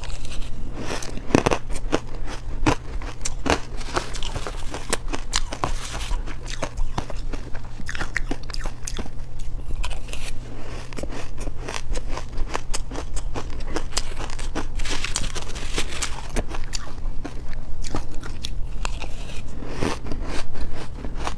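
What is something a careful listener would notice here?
A woman crunches loudly on icy food close to a microphone.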